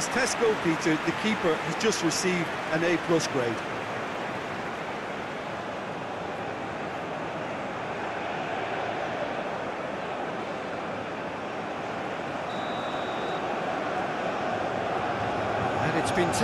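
A large crowd roars steadily in a big stadium.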